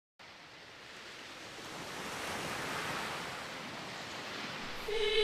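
Waves wash gently onto a beach, swelling and then easing.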